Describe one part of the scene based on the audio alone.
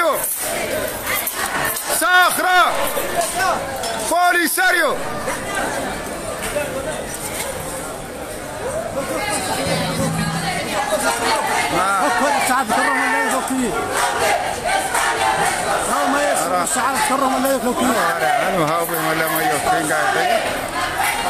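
A large crowd of women and men chants and shouts together.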